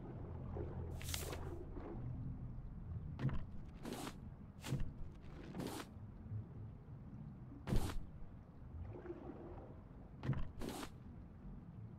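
A metal hook scrapes and thuds into sand.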